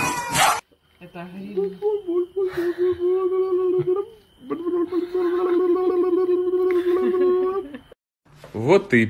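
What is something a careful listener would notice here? A puppy whines and howls in a long, wavering cry.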